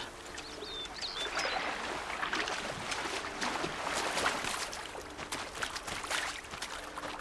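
Water splashes as someone wades through a stream.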